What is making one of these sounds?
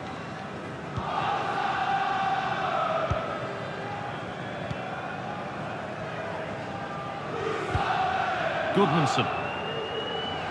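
A large stadium crowd cheers and chants steadily, swelling at times.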